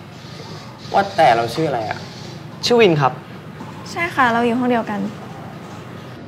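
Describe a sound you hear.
A teenage girl speaks softly, close by.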